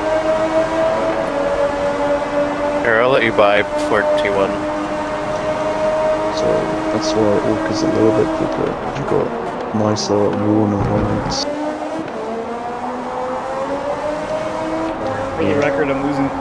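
A racing car engine whines at high revs, steady and loud.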